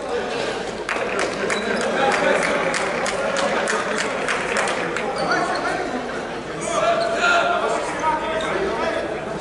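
A volleyball is struck and bounces on a hard floor.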